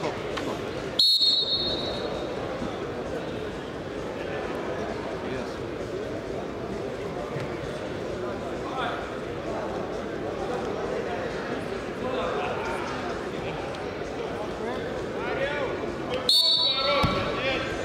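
A referee blows a shrill whistle.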